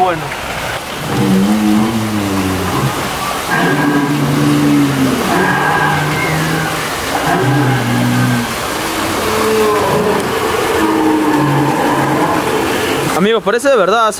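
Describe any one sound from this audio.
A dinosaur model lets out long, deep, rumbling roars.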